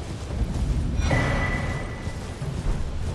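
A bright chime rings once.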